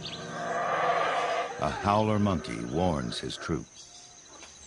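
A monkey howls loudly nearby.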